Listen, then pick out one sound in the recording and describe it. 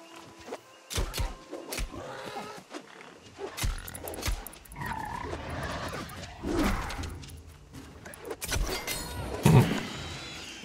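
Weapon blows strike a wild boar with sharp hits.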